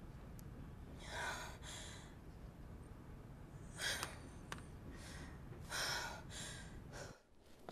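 A young woman speaks quietly into a phone.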